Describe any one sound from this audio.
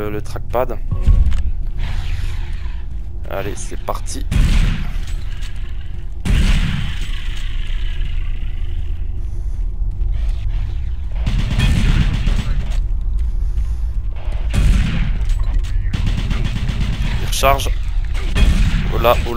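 Guns fire with loud booms.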